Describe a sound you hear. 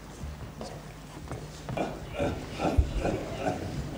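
Footsteps thud on a wooden stage floor.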